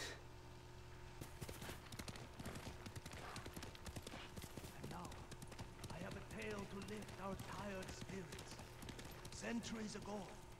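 A horse's hooves thud along a dirt path.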